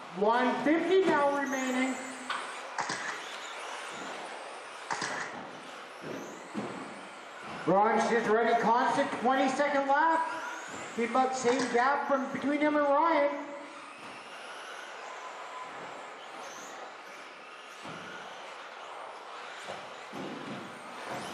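Small electric model cars whine and buzz as they race around a track in a large echoing hall.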